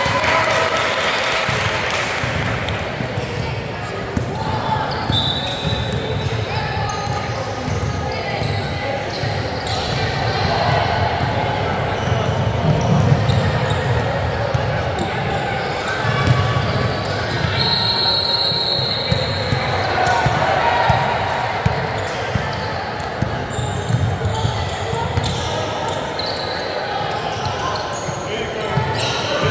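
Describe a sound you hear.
Young women call out to one another across the court.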